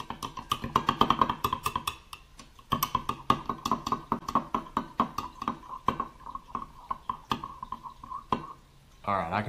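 A spoon clinks and scrapes quickly against a glass cup while stirring.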